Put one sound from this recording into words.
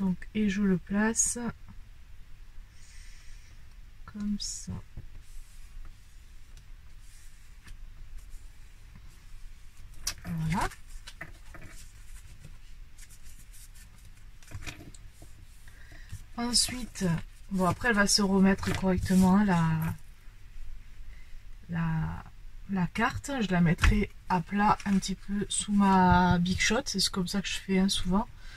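Paper and card rustle and tap as they are handled.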